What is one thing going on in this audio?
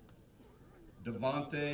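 A man announces over a loudspeaker outdoors.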